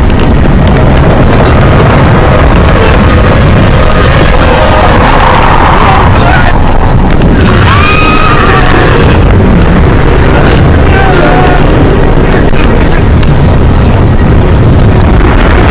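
A strong wind roars and howls loudly, driving sand.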